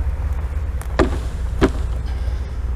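A wooden frame knocks against a plastic bucket.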